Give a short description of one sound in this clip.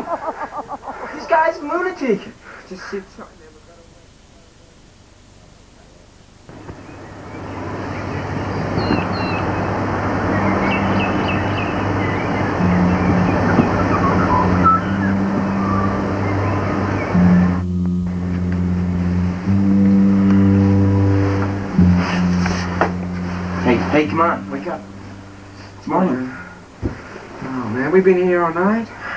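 A young man talks casually nearby.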